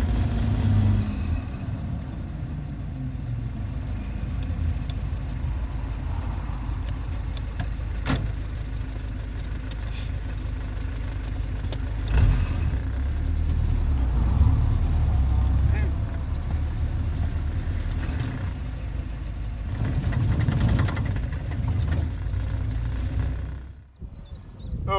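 An open vehicle's engine rumbles steadily while driving.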